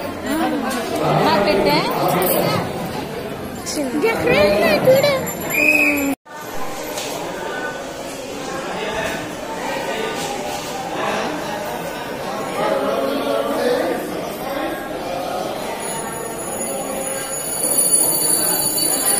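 A crowd of people murmurs and chatters in a busy, echoing hall.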